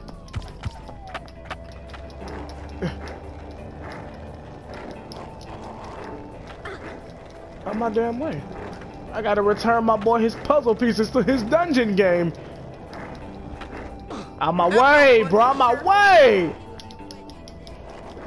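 Skateboard wheels roll over pavement.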